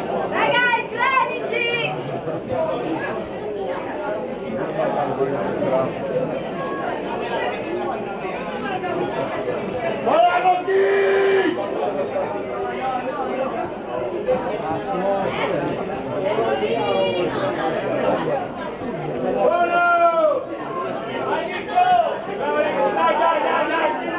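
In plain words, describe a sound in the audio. Young boys shout to each other on a pitch.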